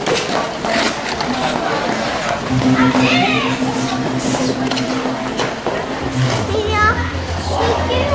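Ice skates scrape across ice.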